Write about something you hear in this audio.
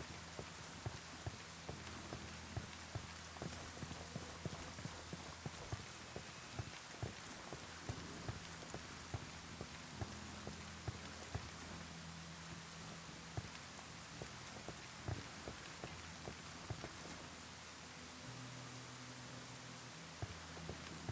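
Footsteps crunch steadily on gravel and dirt.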